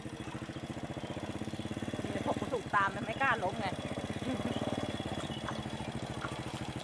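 A motorbike engine idles nearby with a steady, fast putter.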